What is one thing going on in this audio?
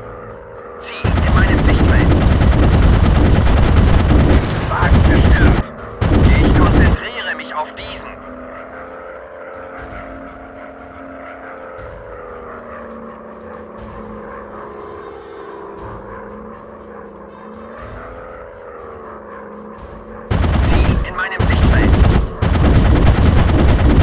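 Machine guns fire in long, loud, rapid bursts.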